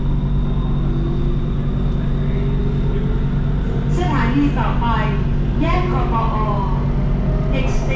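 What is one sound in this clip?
A train's motor whines, rising in pitch as the train pulls away.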